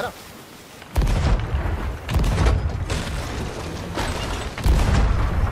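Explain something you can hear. Cannons fire with deep booms.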